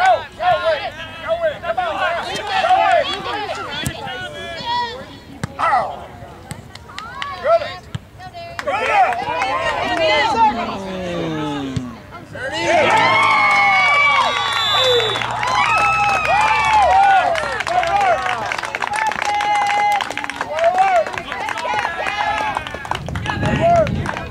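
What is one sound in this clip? Young players shout and call out to one another across an open field.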